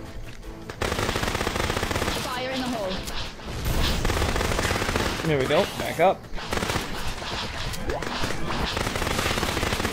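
A ray gun fires in quick bursts.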